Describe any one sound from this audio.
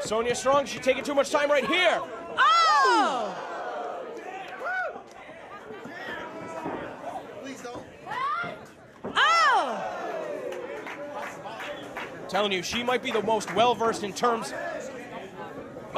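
A crowd shouts and cheers loudly in an echoing hall.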